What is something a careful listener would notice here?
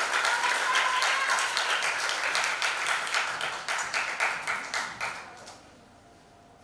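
An audience applauds in a large hall, and the clapping fades away.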